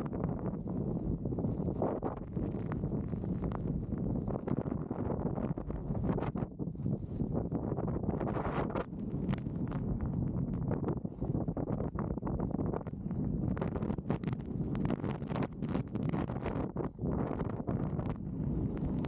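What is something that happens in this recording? Strong wind roars and buffets the microphone.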